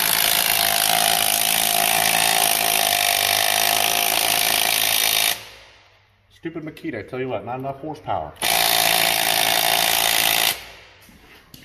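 An impact wrench whirs loudly, spinning lug nuts.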